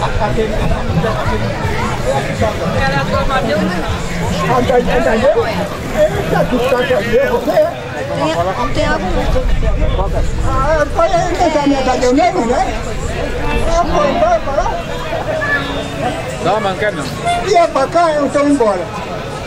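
A crowd murmurs and chatters nearby outdoors.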